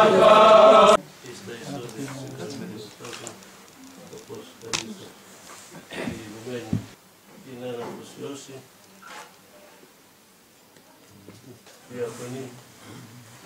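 Men talk quietly in low voices.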